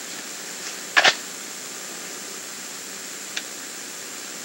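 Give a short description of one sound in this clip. A handgun fires sharp shots outdoors.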